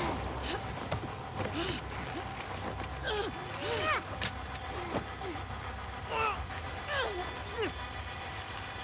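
A young man groans and cries out in strain, close by.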